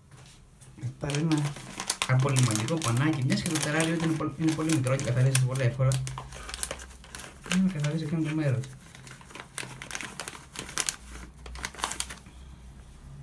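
A plastic wrapper crinkles as a hand handles it.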